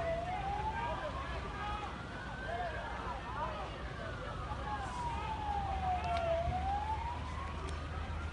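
A siren wails nearby, rising and falling slowly.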